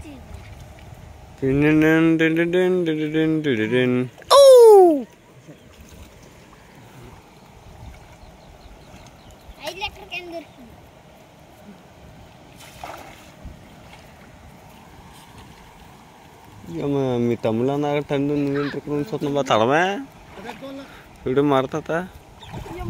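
Water splashes as hands scoop through shallow water.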